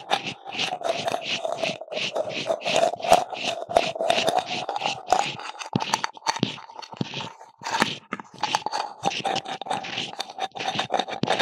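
Fingers scratch and tap on hollow plastic objects close to a microphone.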